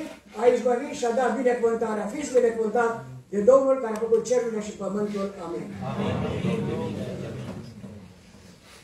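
An elderly man speaks with feeling through a microphone in an echoing hall.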